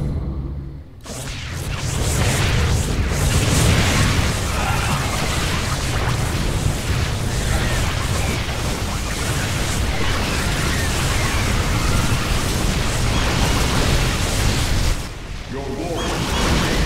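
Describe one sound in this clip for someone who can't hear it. Laser weapons zap and blast rapidly in a loud battle.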